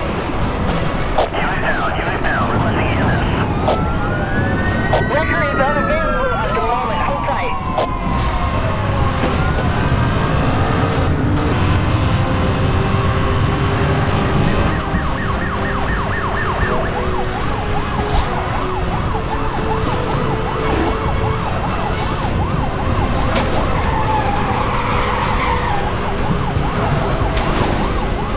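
A car engine roars at high speed, revving up and down.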